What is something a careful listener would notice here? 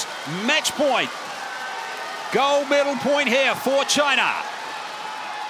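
A large crowd chants loudly in unison in a big echoing arena.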